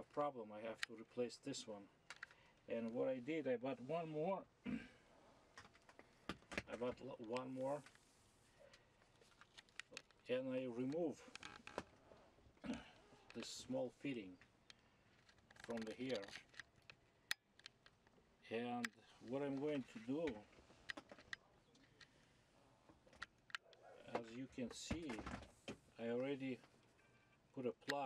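A middle-aged man talks calmly and closely, explaining in short bursts.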